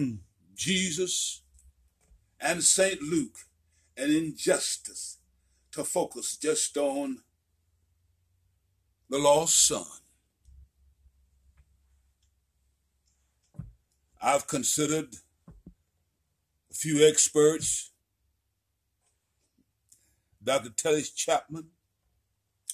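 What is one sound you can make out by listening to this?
An elderly man speaks slowly and deliberately close by, in short phrases with pauses.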